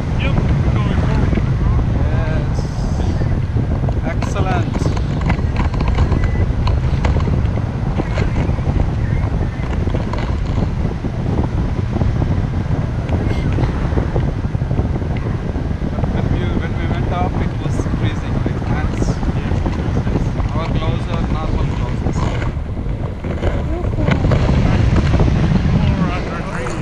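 Strong wind rushes and buffets loudly past a microphone outdoors.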